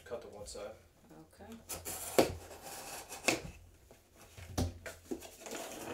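A knife slices through packing tape.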